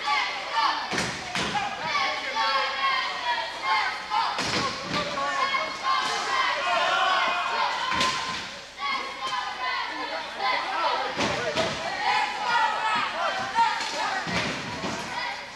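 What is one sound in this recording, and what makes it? Wheelchairs bang and clatter against each other.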